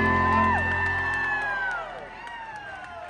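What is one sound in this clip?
An acoustic guitar chord rings out and slowly fades in a large hall.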